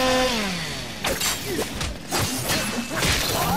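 Swords clash and slash in a fast fight.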